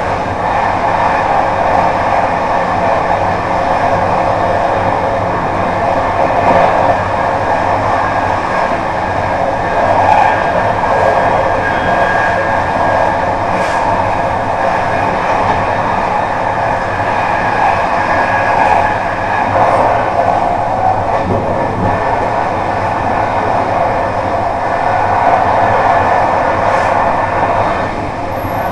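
Wheels click over rail joints now and then.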